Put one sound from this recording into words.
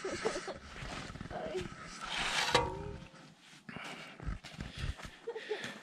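A shovel scrapes and crunches through snow.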